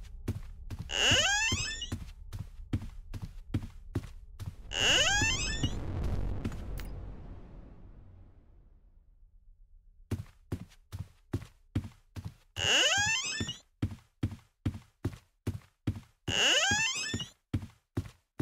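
Footsteps tap at a quick, even pace.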